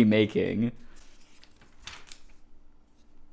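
Glossy catalogue pages rustle and flip.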